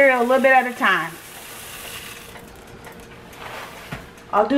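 Dry cereal pours and rattles into a pot.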